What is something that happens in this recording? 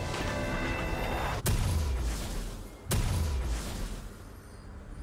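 Magic blasts burst with loud whooshing crashes.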